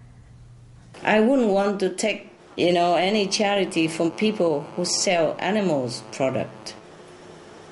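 A woman speaks calmly over a phone line.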